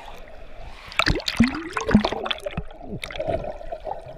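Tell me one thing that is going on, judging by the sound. A swimmer splashes through water.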